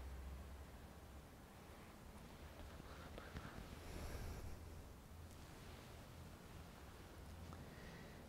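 A man murmurs a prayer softly through a microphone.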